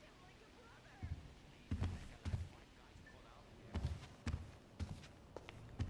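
Footsteps thud on a hard tiled floor.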